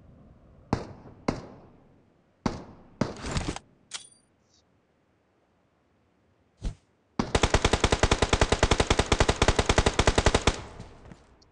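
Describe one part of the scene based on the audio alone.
A rifle fires single shots and then a long rapid burst of gunfire.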